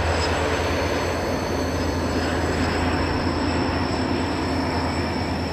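Train wheels rumble along the rails.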